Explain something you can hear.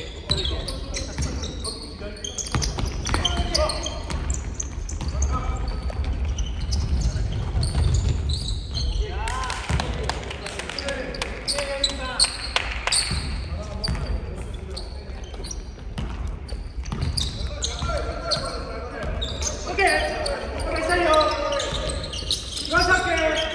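A basketball bounces on a hardwood court in a large echoing gym.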